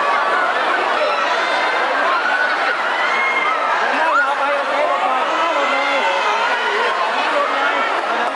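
A large crowd of young women screams and shouts excitedly close by.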